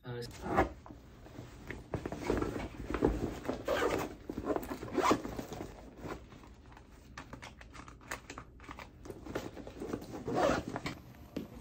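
A backpack's fabric rustles as items are packed into it.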